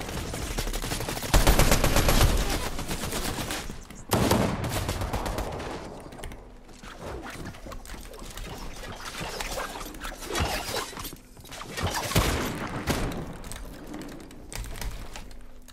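Keys clatter rapidly on a keyboard.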